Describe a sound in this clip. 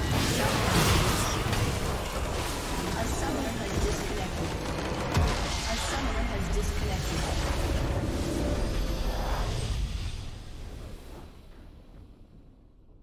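Loud game battle effects crash and boom, then fade away.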